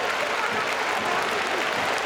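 A drum beats among the crowd.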